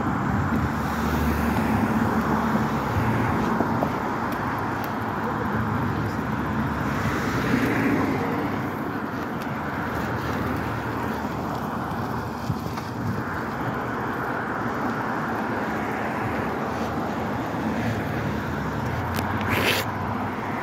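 Traffic passes by steadily on a nearby road outdoors.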